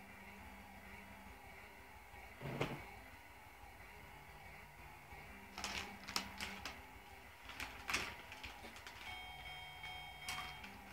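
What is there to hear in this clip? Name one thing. Electronic video game music plays through a television speaker.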